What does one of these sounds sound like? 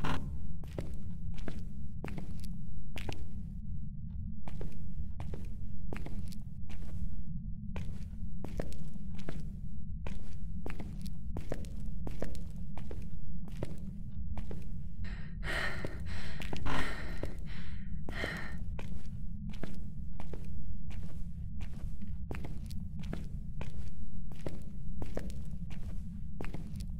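Slow footsteps thud on a hard floor.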